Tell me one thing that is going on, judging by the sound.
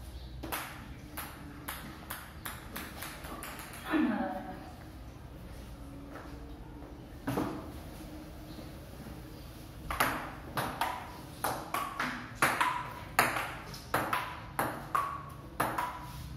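A ping-pong ball clicks back and forth on paddles and a table in a quick rally.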